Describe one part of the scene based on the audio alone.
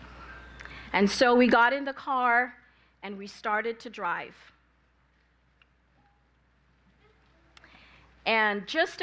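A young woman speaks into a microphone over loudspeakers in an echoing hall, with pauses.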